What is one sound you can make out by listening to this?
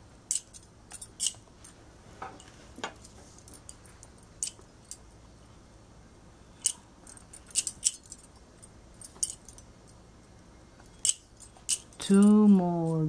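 Metal bangles clink softly against each other.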